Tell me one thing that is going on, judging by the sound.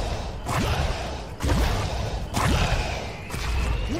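Heavy blows land on a creature with loud, sharp thuds.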